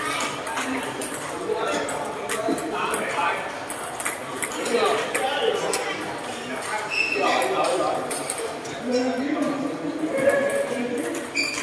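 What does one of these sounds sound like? Several men chat in the background.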